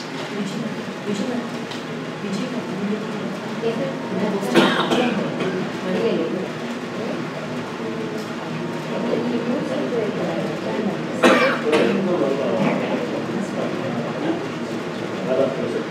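A man speaks steadily in a room with a slight echo.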